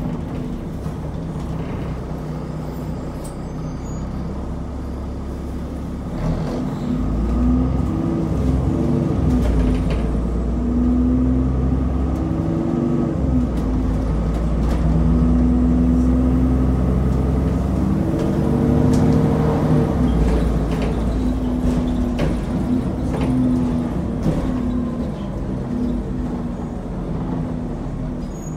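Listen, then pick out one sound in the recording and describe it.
Fittings rattle and knock inside a moving bus.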